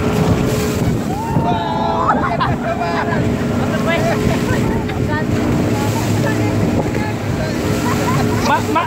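Several people shout and laugh with excitement close by.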